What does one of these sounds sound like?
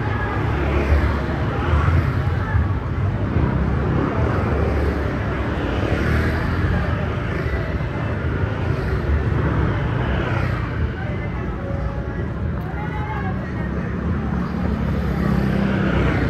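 A motor scooter engine hums close by as it passes.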